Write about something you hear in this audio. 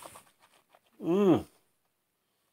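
A man lets out a short rising and falling hum of approval close by.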